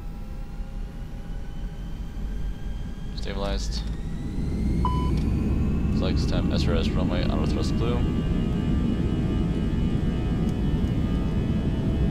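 Wheels rumble over a runway, growing louder.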